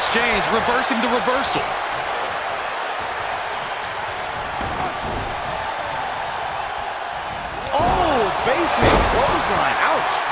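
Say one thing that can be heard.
A large crowd roars steadily in a big arena.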